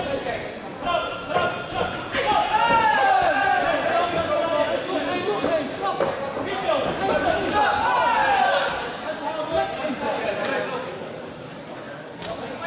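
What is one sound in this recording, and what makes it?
Men shout loudly from close ringside.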